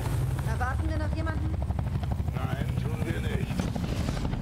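The engines of a heavy gunship rumble low overhead.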